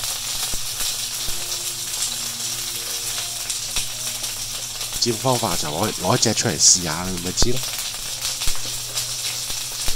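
Chicken sizzles and crackles in hot oil.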